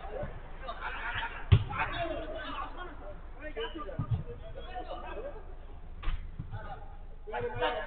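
A football thumps off a player's foot.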